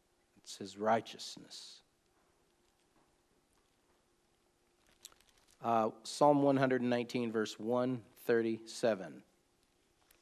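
An older man speaks calmly and slowly, close to a microphone.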